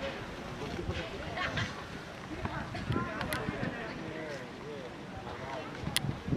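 Young men call out and talk to each other outdoors.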